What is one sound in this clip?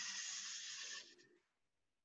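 Sandpaper hisses against spinning wood.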